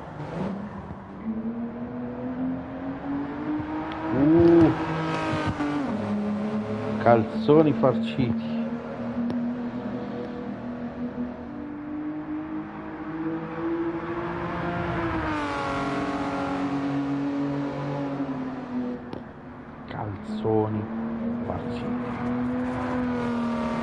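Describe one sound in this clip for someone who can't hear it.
A car engine revs high and drops as gears shift through corners.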